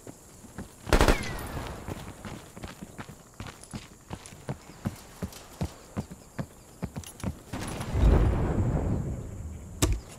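Footsteps run quickly over dirt and then thud up wooden stairs.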